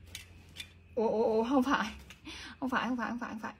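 A young woman speaks calmly, close to the microphone.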